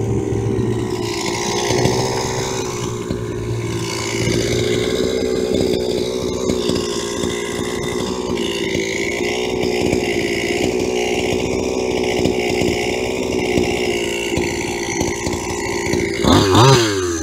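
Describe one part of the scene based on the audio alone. A small model car engine idles with a steady buzzing drone.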